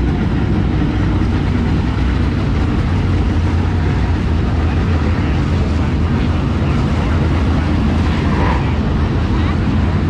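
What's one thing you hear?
Race car engines rise and fall as cars pass close by.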